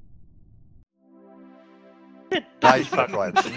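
A short, bright victory tune plays.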